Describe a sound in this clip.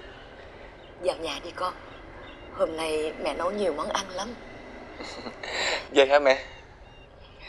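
A middle-aged man speaks warmly, close by.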